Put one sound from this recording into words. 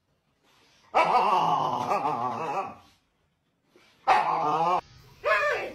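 A husky howls loudly in long wavering cries.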